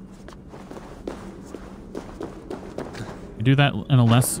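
Footsteps scrape on rocky ground.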